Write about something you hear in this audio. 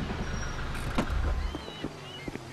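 A vehicle engine idles with a low rumble.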